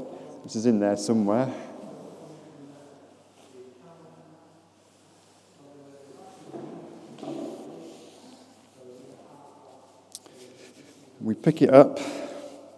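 Parachute fabric rustles as it is spread out.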